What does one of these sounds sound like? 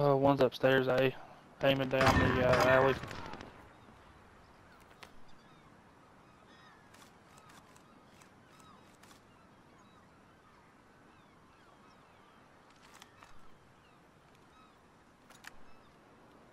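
Metal parts of a gun click and rattle as it is handled.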